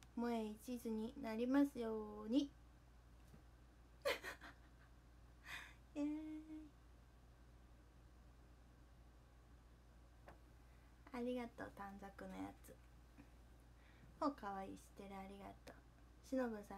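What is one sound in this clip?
A young woman talks cheerfully, close up.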